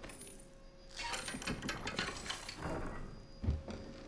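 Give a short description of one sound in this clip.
Metal chains clink and rattle as a hand pulls on them.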